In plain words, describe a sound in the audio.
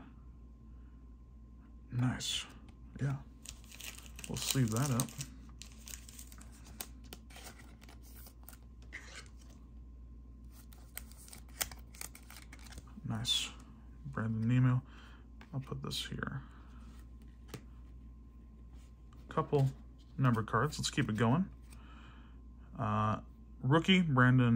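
Trading cards in plastic sleeves rustle and click as hands shuffle them.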